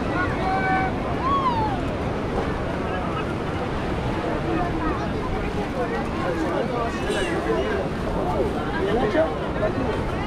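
A crowd of men, women and children chatter and call out all around outdoors.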